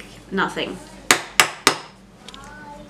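Plastic toy blocks clatter and click on a table.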